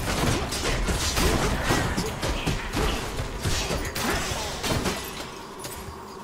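Sword slashes and magic blasts crash in rapid succession.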